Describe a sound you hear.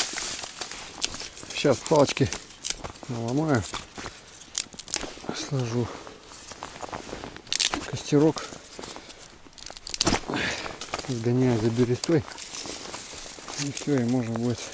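Dry sticks rustle and knock together as they are handled.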